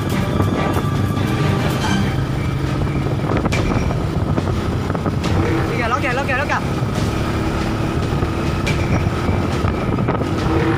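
Tyres roll over a rough dirt road.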